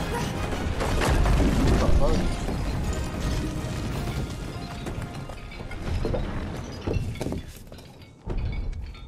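A loud explosion bursts through a brick wall with a rumbling crash.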